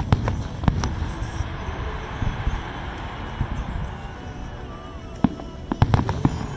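Fireworks boom and crackle in the distance, outdoors.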